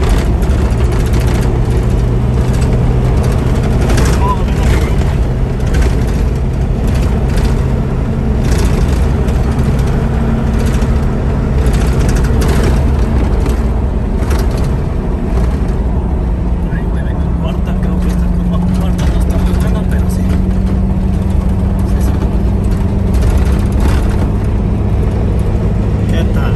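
Wind buffets loudly past the vehicle.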